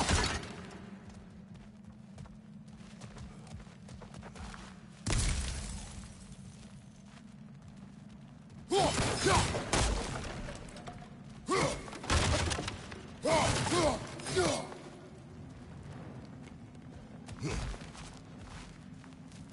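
Heavy footsteps crunch on rock and snow.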